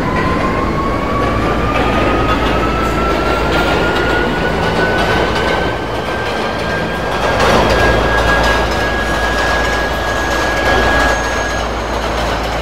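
A subway train motor whines, rising steadily in pitch as it speeds up.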